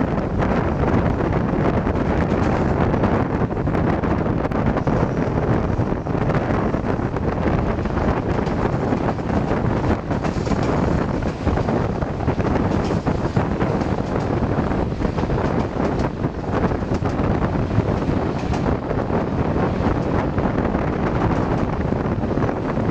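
Wind rushes past an open window.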